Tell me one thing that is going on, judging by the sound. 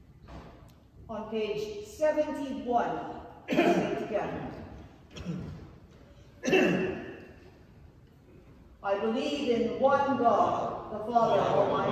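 A woman chants slowly in a large echoing hall.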